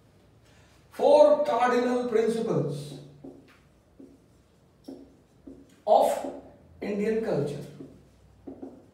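A man speaks calmly, close by, in short bursts.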